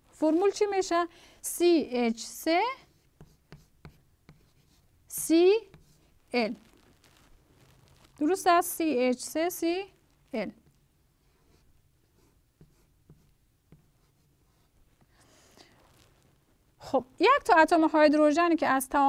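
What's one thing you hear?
A young woman speaks calmly and clearly, close to a microphone.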